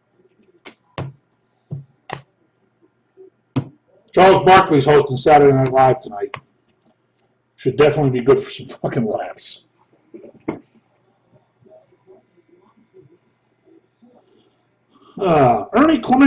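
Cards click and rustle as a man handles them.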